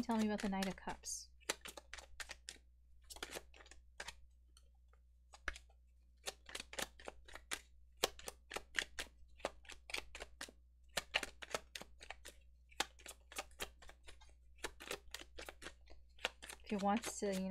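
Playing cards are shuffled with quick soft riffling.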